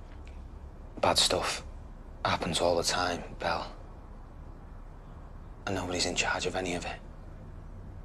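A young man talks quietly, close by.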